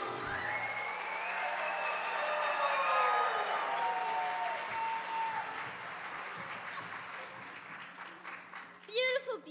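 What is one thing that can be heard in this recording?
A crowd of children cheers and sings loudly in an echoing hall.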